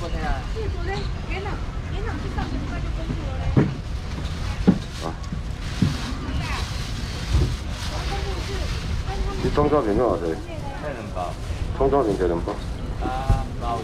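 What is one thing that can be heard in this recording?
Several men talk and chatter nearby, outdoors.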